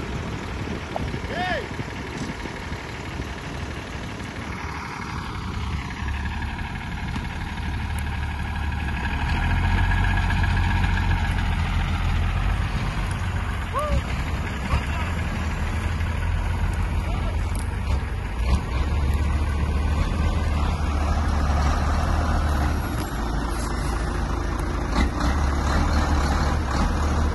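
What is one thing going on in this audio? A tractor's diesel engine rumbles and chugs close by.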